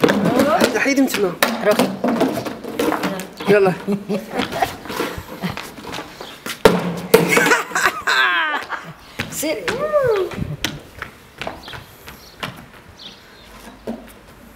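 Empty plastic bottles clatter and bounce across a tiled floor when kicked.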